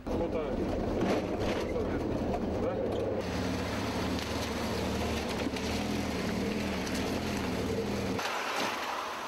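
A car engine rumbles low and steady, heard from inside the car.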